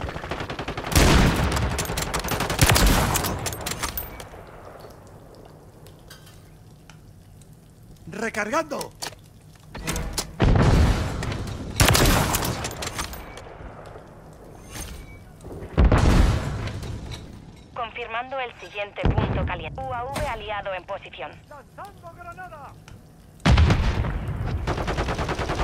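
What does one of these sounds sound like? A sniper rifle fires loud, booming shots now and then.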